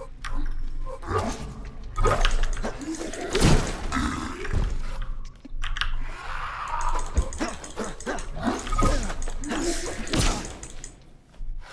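Creatures screech and growl.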